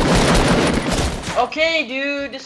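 Gunshots fire in a rapid burst.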